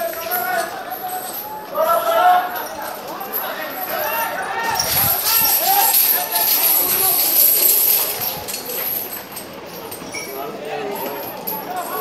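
A crowd of people shouts and calls out in the distance outdoors.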